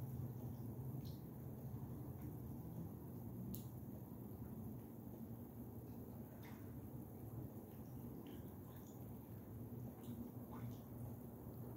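Ducklings peep faintly now and then.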